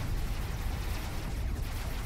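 Explosions boom as a vehicle is blown apart.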